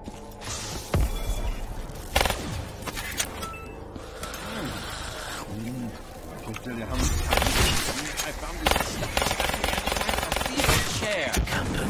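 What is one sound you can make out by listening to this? Gunshots ring out in loud, sharp bursts.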